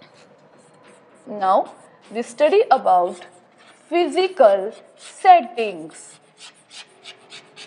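Chalk taps and scratches on a chalkboard.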